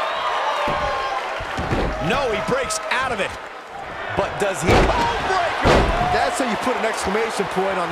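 Wrestlers' bodies thud heavily onto the ring mat.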